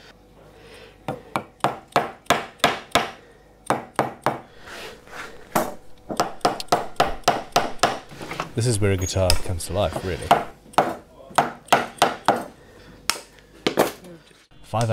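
A small hammer taps metal frets into wood with quick, sharp knocks.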